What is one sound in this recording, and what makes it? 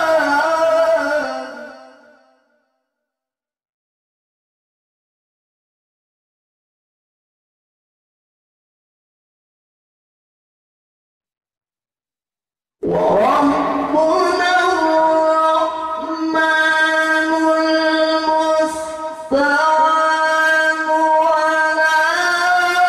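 A man sings loudly into a microphone through loudspeakers.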